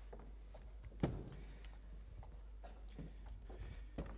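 A wooden chair scrapes and thumps on a wooden floor.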